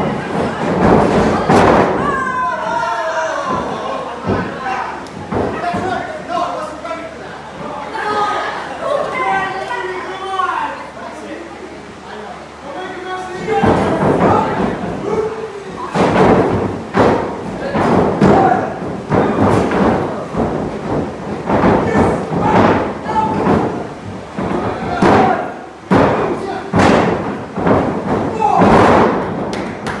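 Wrestlers thud onto a ring mat.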